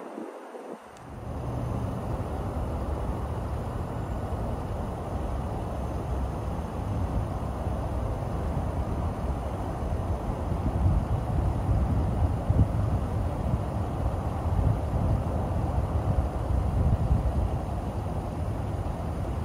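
A V8 sports car engine idles with a deep rumble.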